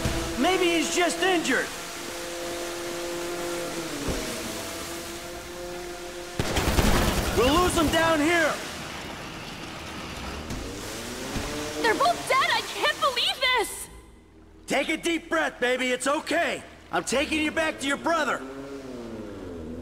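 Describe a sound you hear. Water sprays and hisses behind a speeding jet ski.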